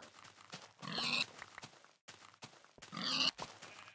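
Pigs squeal as they are struck.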